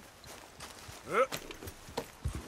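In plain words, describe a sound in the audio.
A horse neighs loudly nearby.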